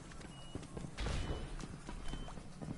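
Gunshots crack and echo in a game.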